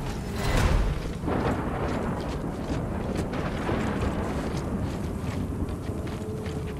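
A blizzard wind howls steadily outdoors.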